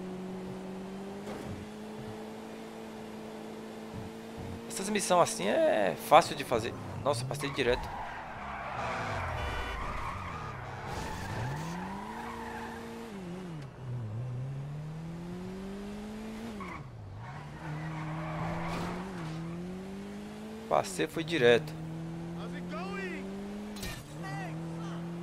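A car engine hums steadily and rises and falls in pitch as the car speeds up and slows down.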